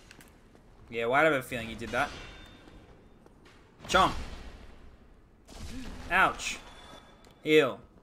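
A sword clashes against skeletons in quick hits.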